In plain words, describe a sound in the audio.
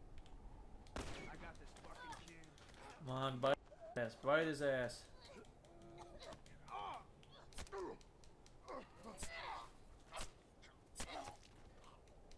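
Men grunt and cry out in a struggle.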